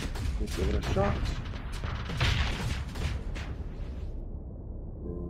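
Explosions boom and crackle in a space battle.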